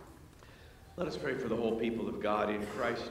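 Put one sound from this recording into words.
An elderly man speaks calmly through a microphone in a large echoing room.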